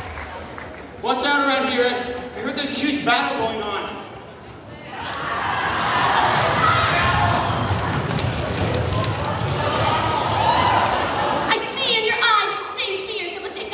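Young people whoop and shout close by.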